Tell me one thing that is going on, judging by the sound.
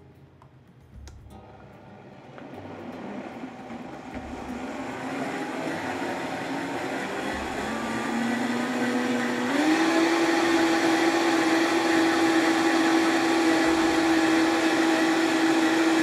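A blender whirs, speeding up to a loud, steady whine.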